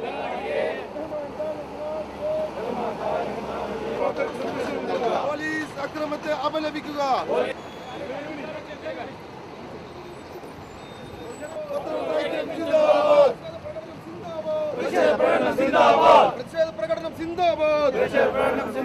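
A crowd of men chants slogans loudly outdoors.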